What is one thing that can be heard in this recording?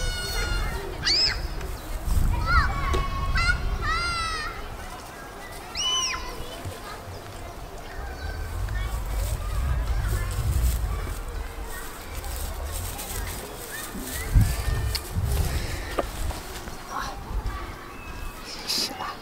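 Goats shuffle and rustle through dry straw.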